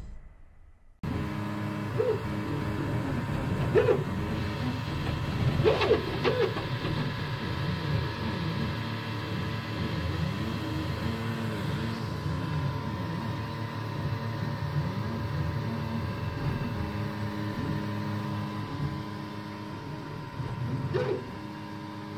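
Printer motors whir with whining tones that keep shifting in pitch.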